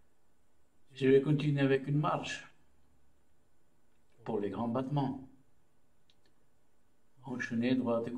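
A middle-aged man speaks calmly and close by, in short phrases.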